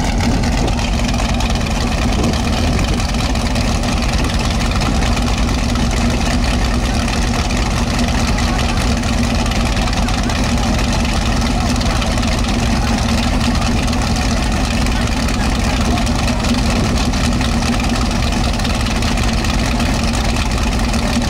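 A loud race car engine idles with a deep, steady, rough rumble close by.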